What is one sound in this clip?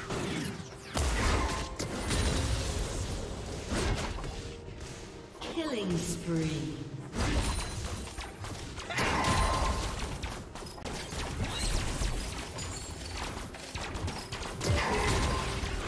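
Game spell effects crash and whoosh in a busy battle.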